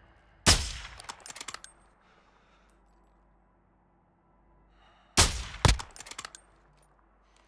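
A rifle bolt clicks and clacks as it is worked.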